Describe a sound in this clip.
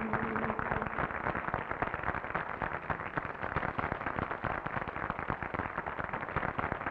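An audience claps loudly and steadily.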